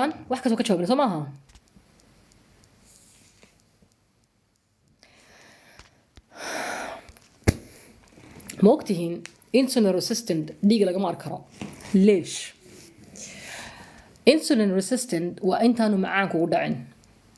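A woman speaks calmly and close to a microphone, pausing between phrases.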